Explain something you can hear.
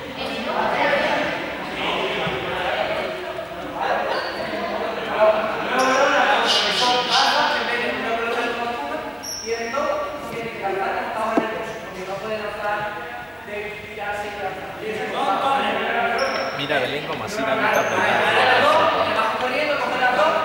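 Children chatter and shout in a large echoing hall.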